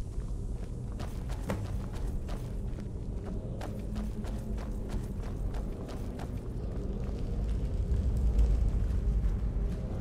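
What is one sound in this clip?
Footsteps crunch on stone in an echoing tunnel.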